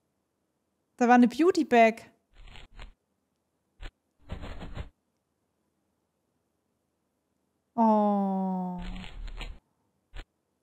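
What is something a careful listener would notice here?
A cartoon character speaks in a high, playful voice.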